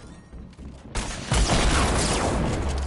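Wooden planks slam into place with a loud clatter.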